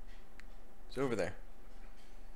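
A short cartoonish chirp sounds.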